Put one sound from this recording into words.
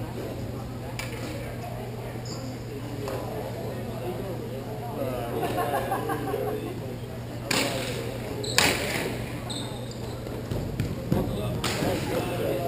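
Hockey sticks clack against a ball and against each other.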